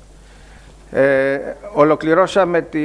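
An elderly man speaks calmly through a microphone.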